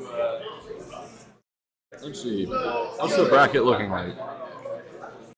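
Young men talk and chatter in a room.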